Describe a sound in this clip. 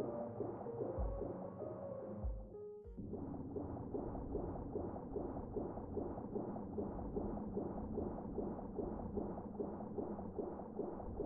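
Electronic game music plays with a steady pulsing beat.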